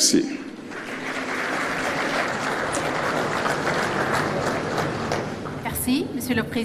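A crowd applauds in a large room.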